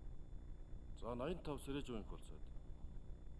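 A middle-aged man speaks briefly and calmly into a microphone.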